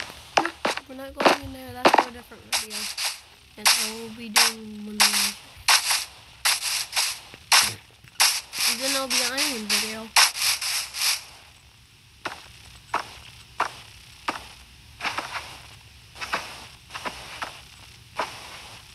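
Footsteps tread quickly over grass and dirt.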